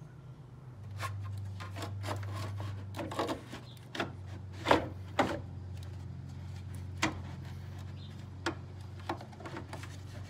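Plastic parts click and knock as hands work them loose.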